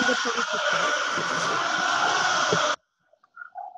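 A large crowd roars and chants in a huge echoing arena.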